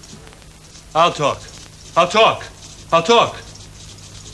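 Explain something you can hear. A hurt man speaks in short, strained bursts.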